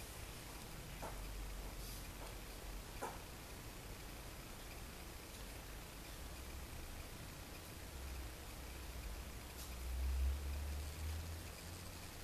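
Clothing rustles softly as hands move close by.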